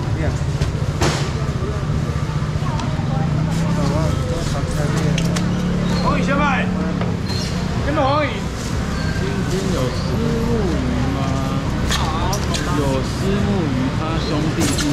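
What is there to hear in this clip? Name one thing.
A foam box lid scrapes and squeaks as a young man handles it.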